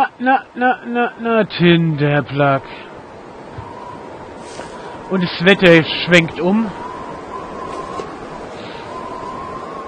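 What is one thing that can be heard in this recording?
Wind blows steadily over open snow.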